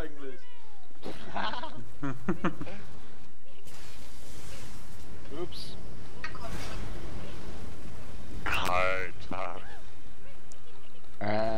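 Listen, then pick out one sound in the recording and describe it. Fiery spells burst and roar in quick succession.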